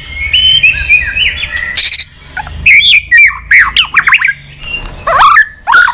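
A songbird flutters its wings.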